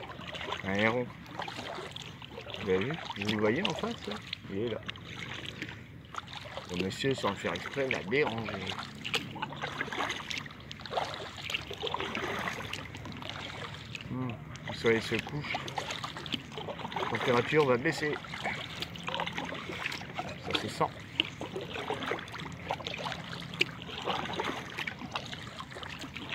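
Water ripples softly against the hull of a gliding kayak.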